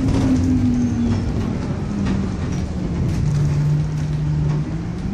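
The diesel engine of a single-deck bus drones, heard from inside as the bus drives along.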